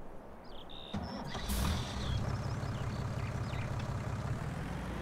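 A tractor engine idles with a low rumble.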